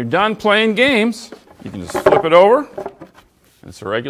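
A wooden tabletop knocks as it is set down.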